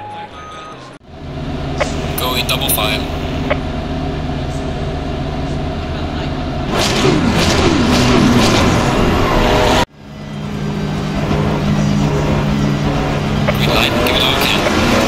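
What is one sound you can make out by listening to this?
A race car engine hums low and steady, then revs up.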